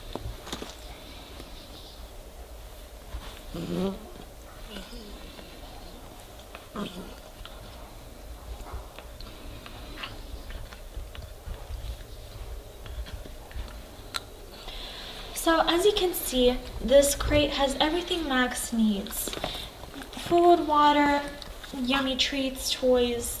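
A puppy shuffles about in a soft bed.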